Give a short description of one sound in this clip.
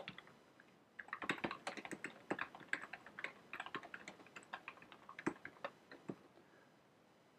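Keys on a keyboard click and clatter quickly.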